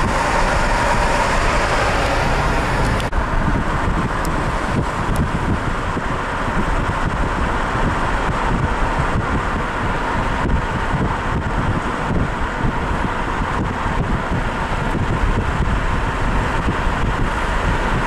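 Tyres roar on asphalt, heard from inside a moving car.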